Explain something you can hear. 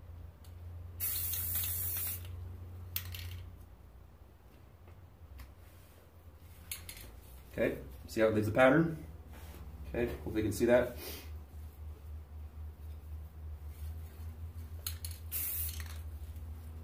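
An aerosol can hisses in short sprays.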